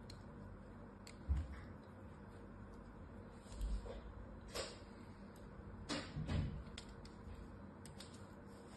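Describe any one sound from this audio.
A blade slices and scrapes through soft foam with crisp clicks.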